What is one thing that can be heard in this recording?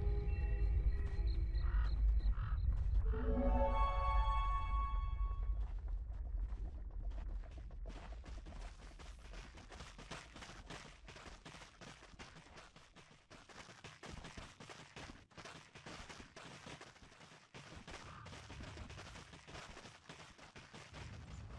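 Fantasy game sound effects of spells and clashing weapons crackle and thud.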